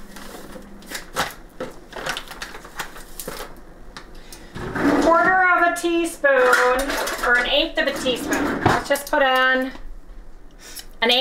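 Utensils clink and tap against containers.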